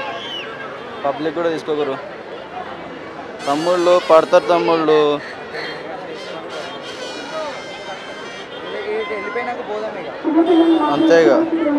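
Men in a crowd shout and chant loudly.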